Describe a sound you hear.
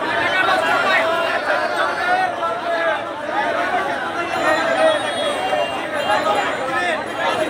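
A crowd of young men shouts and cheers excitedly close by.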